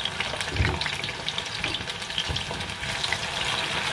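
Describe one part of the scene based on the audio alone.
Pieces of food drop into hot oil with a sharp burst of sizzling.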